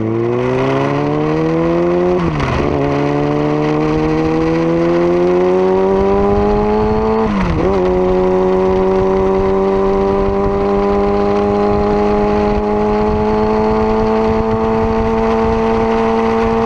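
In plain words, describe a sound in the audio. A motorcycle engine revs up close, rising in pitch and dropping at gear shifts.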